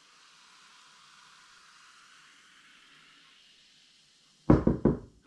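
Beer fizzes softly in a glass.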